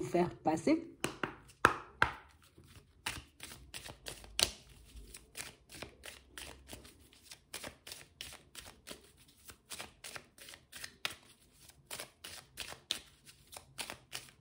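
Playing cards riffle and flick quickly, one after another.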